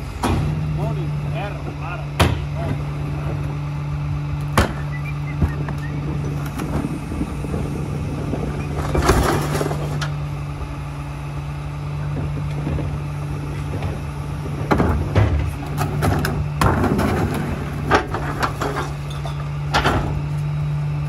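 A garbage truck engine idles with a steady low hum.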